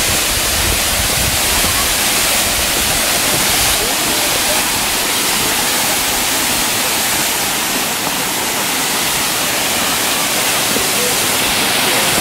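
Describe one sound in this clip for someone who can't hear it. A distant waterfall rushes steadily.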